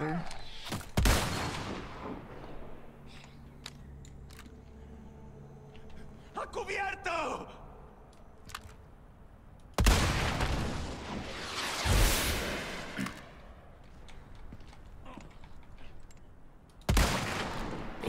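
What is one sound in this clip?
A rifle fires with a loud crack.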